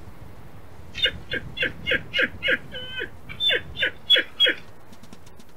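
A wolf squeaks in quick, high bursts.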